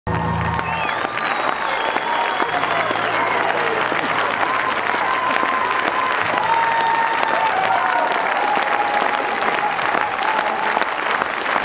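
A large audience claps loudly in a big hall.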